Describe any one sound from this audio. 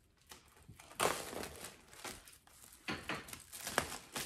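Paper rustles and tears as a gift is unwrapped.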